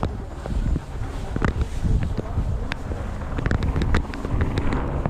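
A vehicle rumbles as it drives through tall grass.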